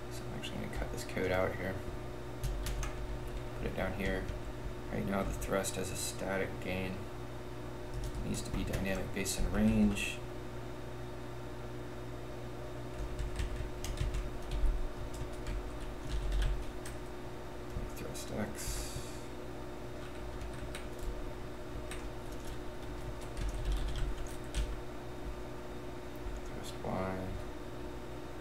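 A man speaks calmly and close to a microphone, pausing between phrases.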